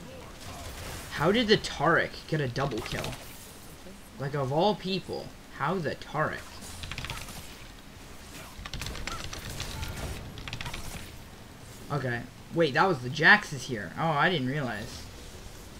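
Magic spells whoosh and crackle in a fast video game battle.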